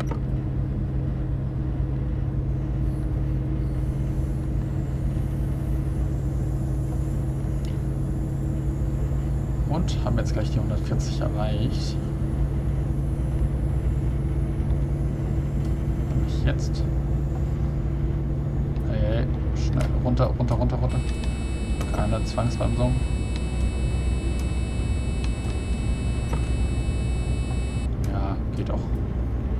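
A diesel multiple unit's engine drones as the train runs along rails.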